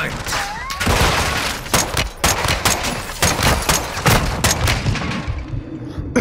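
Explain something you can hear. Rapid gunshots ring out at close range.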